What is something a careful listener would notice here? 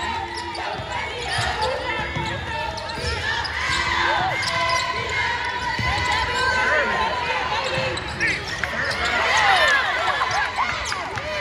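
Sneakers squeak sharply on a hard court in an echoing gym.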